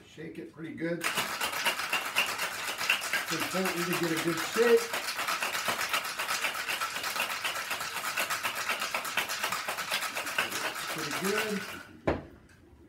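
Ice rattles hard and fast inside a metal cocktail shaker.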